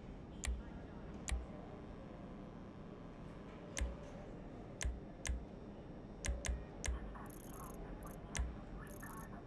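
Soft menu clicks tick now and then.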